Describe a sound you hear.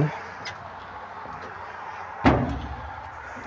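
A metal gate clanks shut.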